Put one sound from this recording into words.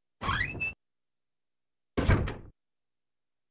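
A door creaks open and thuds.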